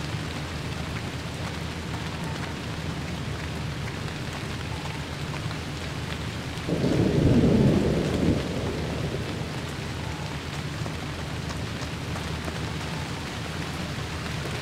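Steady rain falls outdoors.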